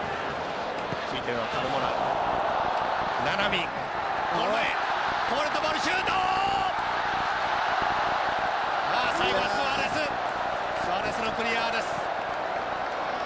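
A large crowd cheers louder, swelling and then settling.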